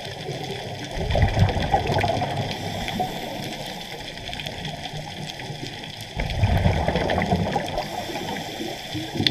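Bubbles from a diver's breathing gear rumble and gurgle in bursts, muffled underwater.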